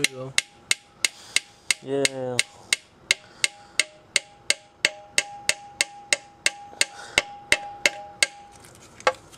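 A machine part knocks in a steady, rapid rhythm.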